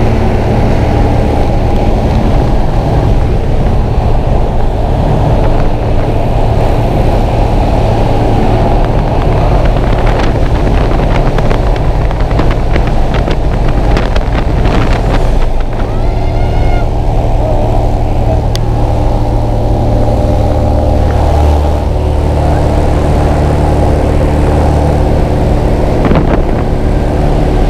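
An aircraft engine drones loudly and steadily.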